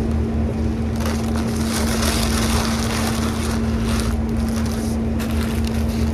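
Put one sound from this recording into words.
Paper wrapping crinkles and rustles close by.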